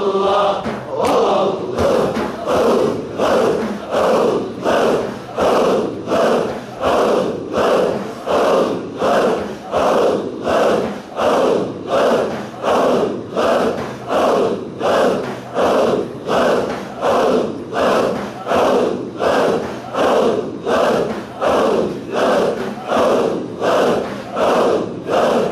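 A group of men chant together in a steady, rhythmic beat, about twice a second.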